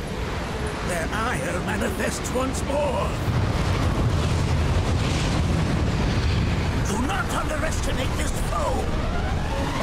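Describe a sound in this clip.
An elderly man speaks gravely through game audio.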